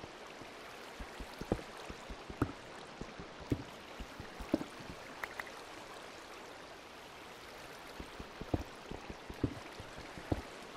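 A pickaxe chips at stone in sharp, regular knocks.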